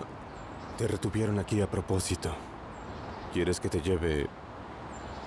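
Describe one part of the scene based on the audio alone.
A man speaks in a low, calm voice close by.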